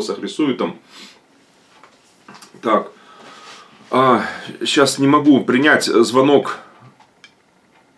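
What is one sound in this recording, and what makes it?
A middle-aged man speaks calmly and close by.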